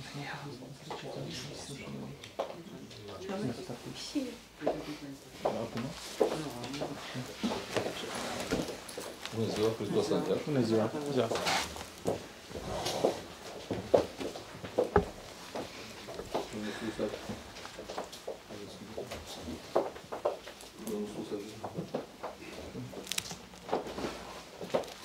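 Men talk among themselves nearby.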